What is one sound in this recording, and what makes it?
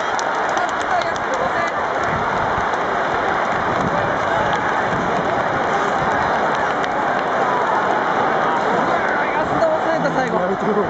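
A large stadium crowd cheers and chatters loudly all around.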